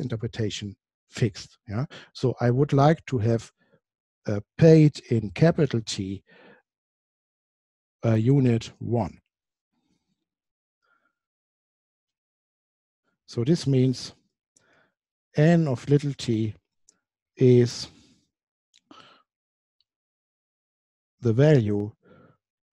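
A man lectures calmly into a close microphone, with pauses.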